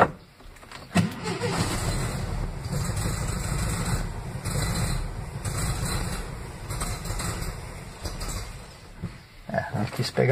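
A car engine runs with a low, steady rumble, heard from inside the car.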